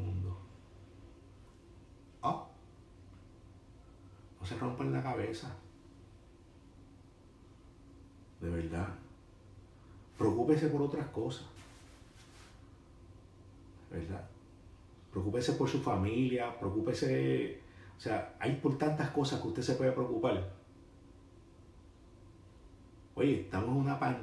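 A man speaks calmly and close to a microphone, in short phrases with pauses.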